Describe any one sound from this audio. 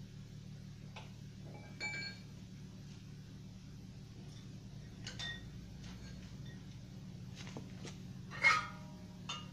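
Metal tools clink and clatter against engine parts.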